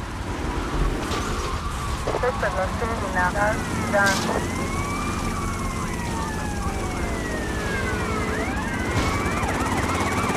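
A police siren wails and rises and falls in pitch nearby.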